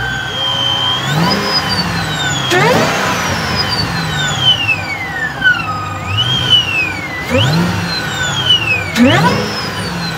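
A supercharged V8 is revved, its supercharger whine rising and falling.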